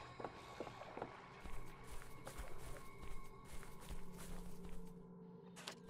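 Footsteps crunch softly on sand.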